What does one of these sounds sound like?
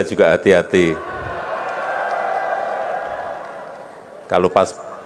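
A crowd cheers and murmurs.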